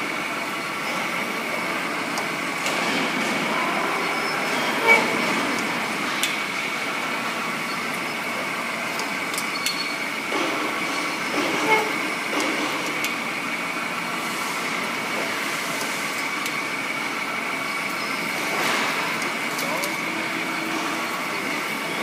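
A pipe cutting machine hums steadily.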